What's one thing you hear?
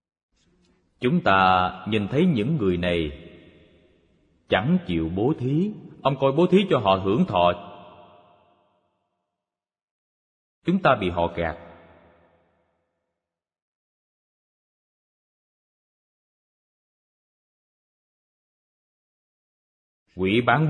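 An elderly man speaks calmly and with emphasis into a close microphone, in short bursts with long pauses.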